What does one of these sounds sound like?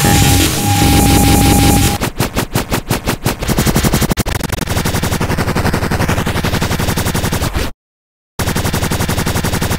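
An electronic beat with a deep bass line plays, breaking off briefly before carrying on.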